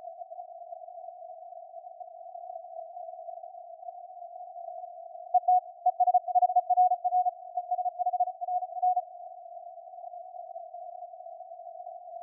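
Radio static hisses steadily through a receiver.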